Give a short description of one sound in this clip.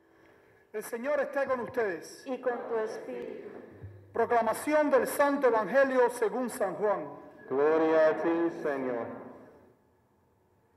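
A man sings a chant through a microphone.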